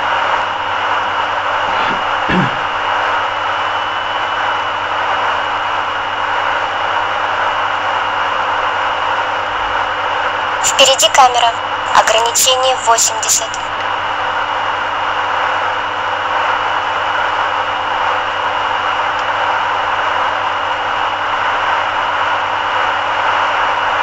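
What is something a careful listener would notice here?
A car's engine hums steadily with road noise from inside as it drives fast.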